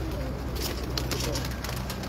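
A pigeon flaps its wings in a short burst.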